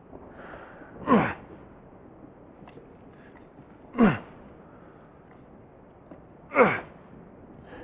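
A hammer swings through the air with a heavy whoosh.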